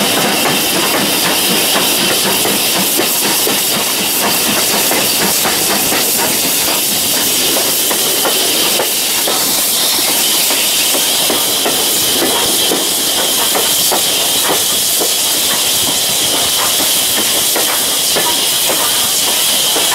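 A steam locomotive chuffs steadily as it runs along the track.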